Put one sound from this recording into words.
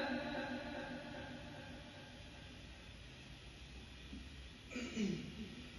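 A young man recites melodiously into a microphone, heard through a loudspeaker with some echo.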